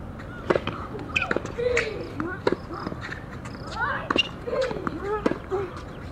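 A racket strikes a tennis ball with a sharp pop.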